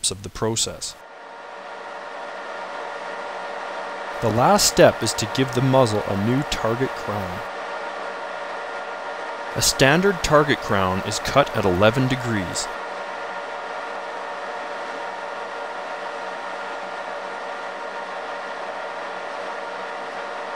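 A lathe runs with a steady mechanical hum as a cutting tool works a metal part.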